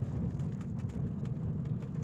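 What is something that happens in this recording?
A hydraulic excavator's diesel engine runs.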